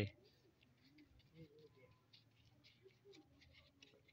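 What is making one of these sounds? A paintbrush brushes softly across a rough surface.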